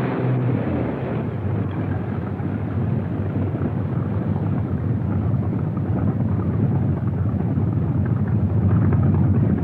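Water splashes and sloshes against boats.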